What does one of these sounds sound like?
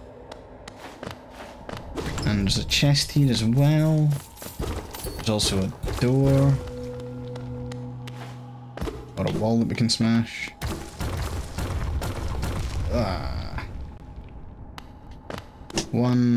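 Short sound effects of a video game tap and click.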